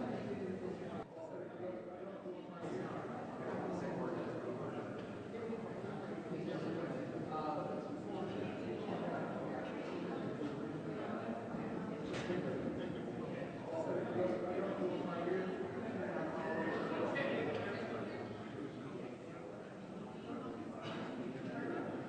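A crowd of people murmurs and chatters indoors.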